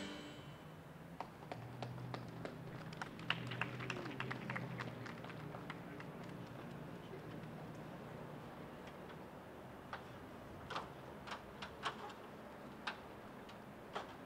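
A flag flaps and snaps sharply in the wind.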